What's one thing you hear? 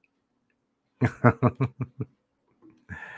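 A middle-aged man laughs close to a microphone.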